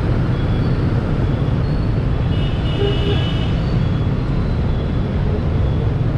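A motorbike engine hums steadily at low speed.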